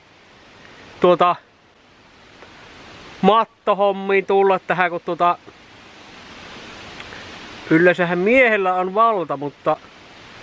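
A man talks with animation close to the microphone, in short bursts.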